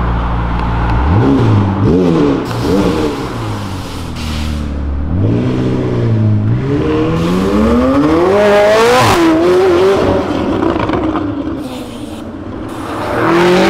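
A sports car engine revs loudly in sharp bursts and roars as the car pulls away.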